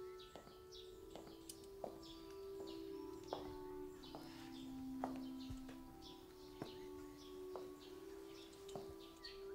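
Boots step firmly on a stone pavement.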